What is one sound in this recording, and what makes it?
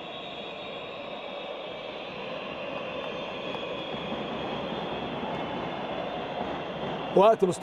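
A crowd cheers and shouts steadily in a large echoing hall.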